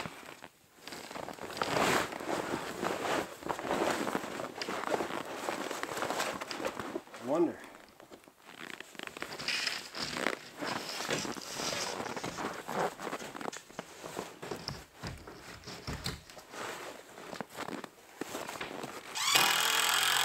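Stiff canvas rustles and flaps as it is pulled over a frame.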